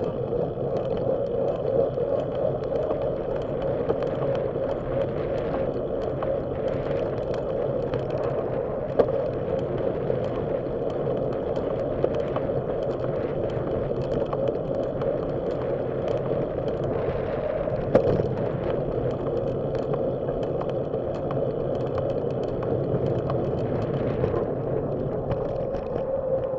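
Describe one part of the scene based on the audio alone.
Tyres roll steadily over asphalt with a low hum.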